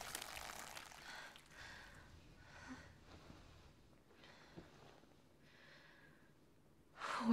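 A young woman breathes heavily and gasps.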